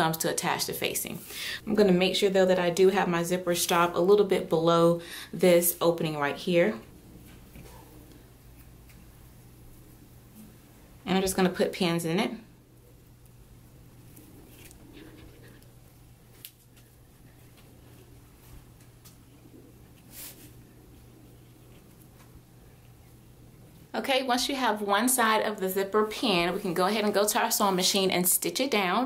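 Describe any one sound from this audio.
Soft fabric rustles as hands smooth and pin it.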